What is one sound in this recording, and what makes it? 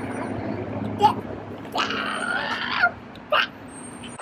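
A young boy shouts playfully outdoors.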